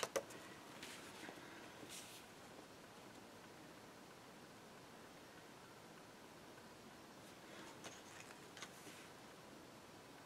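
Paper rustles and slides as hands handle it.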